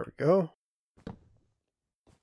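A block breaks with a short crunch.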